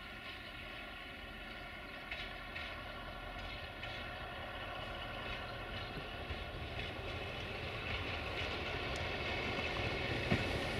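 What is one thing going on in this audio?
A diesel-hydraulic locomotive drones as it approaches, growing louder.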